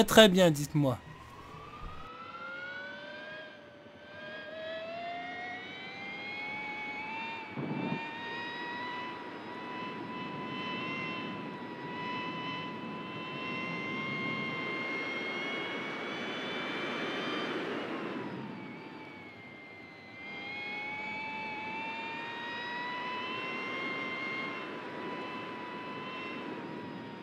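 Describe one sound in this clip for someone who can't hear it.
A motorcycle engine whines loudly, rising and falling in pitch as it shifts gears.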